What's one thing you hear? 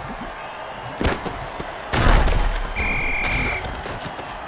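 Armoured players crash into each other with heavy thuds.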